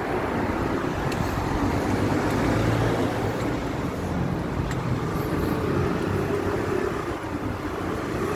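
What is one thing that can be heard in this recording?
Traffic rumbles steadily on a nearby street outdoors.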